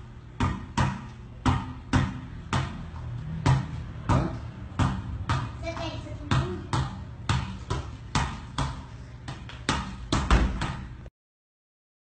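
A ball thumps repeatedly against a bare foot and knee.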